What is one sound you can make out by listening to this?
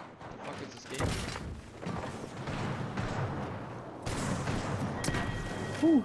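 Gunshots fire in quick bursts from a game.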